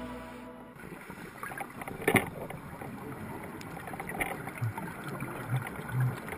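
Scuba divers' exhaled bubbles gurgle and rumble underwater.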